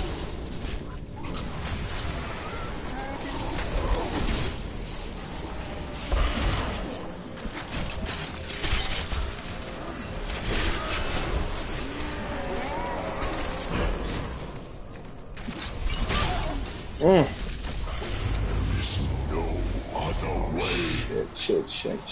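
Magic blasts and clashing effects of a video game battle crackle and boom.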